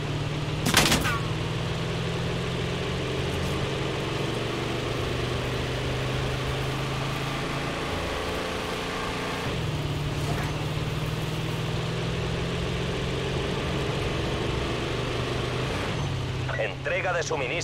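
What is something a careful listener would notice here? A truck engine hums steadily as it drives along.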